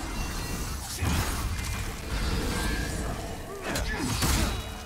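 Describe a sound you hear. Magic bursts whoosh and boom.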